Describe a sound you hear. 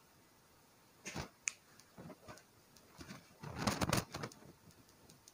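A marker taps and scrapes on a board.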